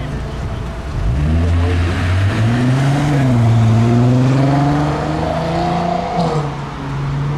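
A car engine revs loudly as the car drives past close by.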